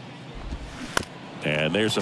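A bat sharply cracks against a ball.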